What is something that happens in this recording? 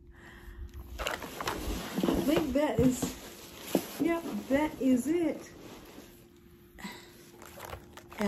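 Paper or plastic rustles as it is handled.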